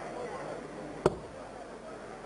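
A dart thuds into a dartboard.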